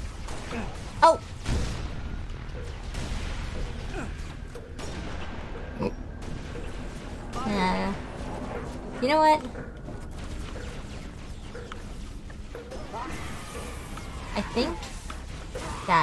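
Gunfire and energy blasts go off in short bursts.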